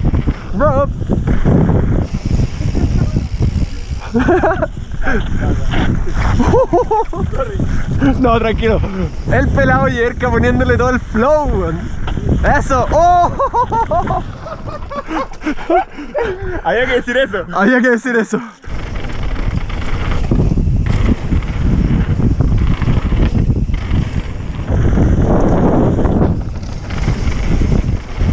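Bicycle tyres roll and crunch over a dirt trail.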